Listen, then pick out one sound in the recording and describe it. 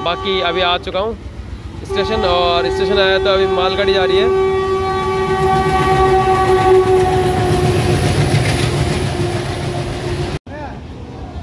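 A freight train rumbles and clatters past on the rails.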